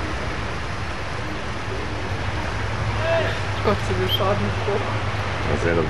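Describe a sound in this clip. A car drives slowly through deep floodwater, splashing.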